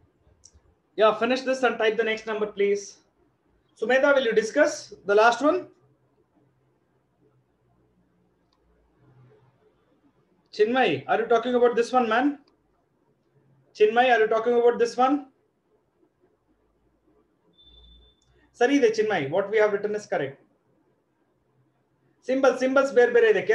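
A man speaks calmly and clearly into a nearby microphone, in short bursts with pauses.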